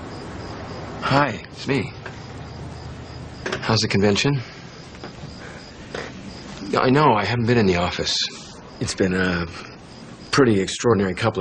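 A man speaks quietly into a telephone.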